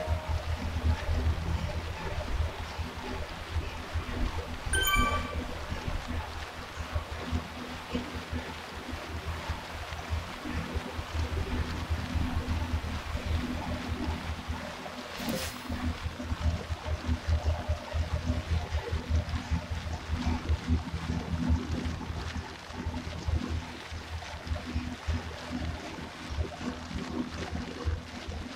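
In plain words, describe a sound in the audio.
An indoor bike trainer whirs steadily.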